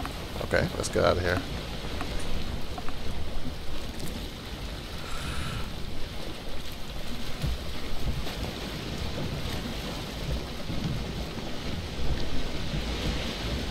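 Waves wash and splash against a boat's hull.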